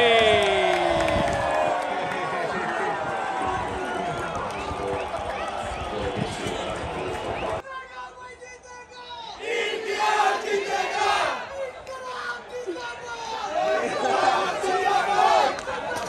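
A large stadium crowd murmurs and cheers outdoors.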